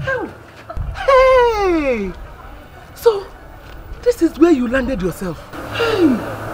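A middle-aged woman shouts angrily up close.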